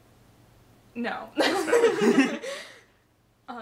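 A young woman speaks briefly and with animation close by.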